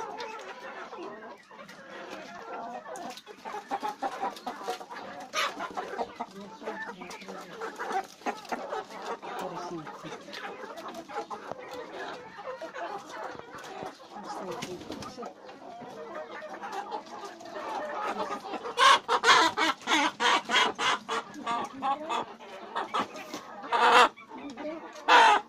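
Chickens cluck and chirp nearby, getting louder and more agitated toward the end.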